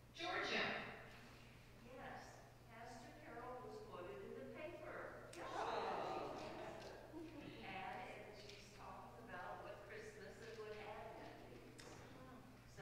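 A middle-aged woman speaks warmly into a microphone in an echoing room.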